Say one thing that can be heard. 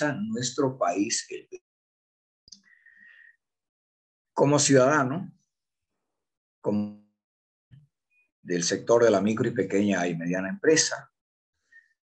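A middle-aged man speaks calmly in bursts over an online call.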